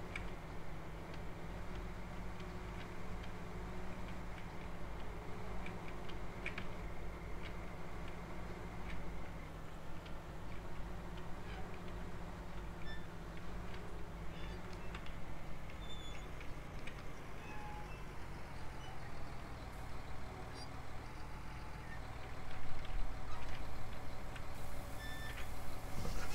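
A tractor engine drones steadily.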